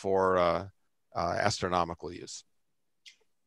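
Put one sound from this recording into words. An older man speaks over an online call.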